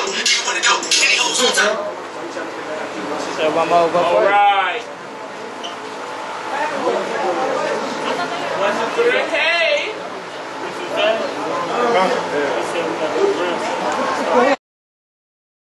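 A young man speaks loudly with animation to a small crowd.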